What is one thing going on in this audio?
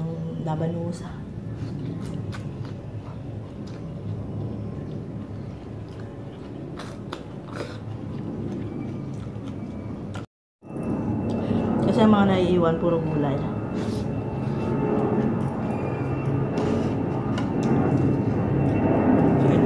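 A woman chews and smacks her lips noisily close to the microphone.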